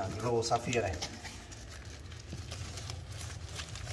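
Cardboard rustles as a box flap is handled.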